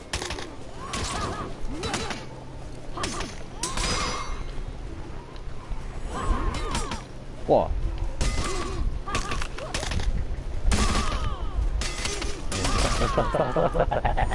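Metal blades clash and ring in a fast fight.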